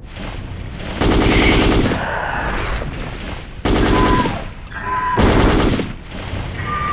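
A submachine gun fires in short bursts.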